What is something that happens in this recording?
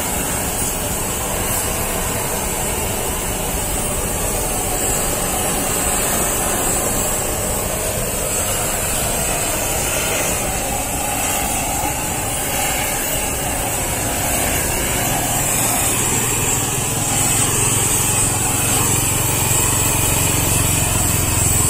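A gas torch roars steadily.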